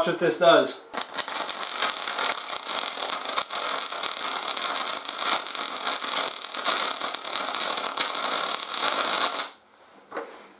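A welding arc hisses and buzzes steadily nearby.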